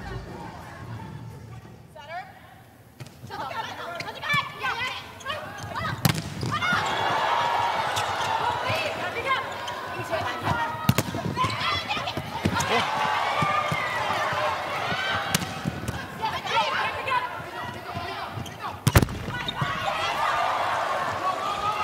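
A crowd in a large hall cheers and murmurs.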